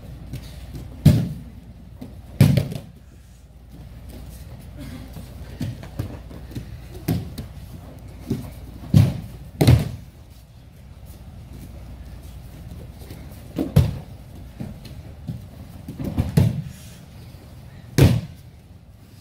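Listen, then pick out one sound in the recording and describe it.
Bodies thud onto a padded mat as people are thrown.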